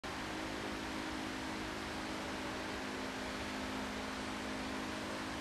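A young man sings a long held note.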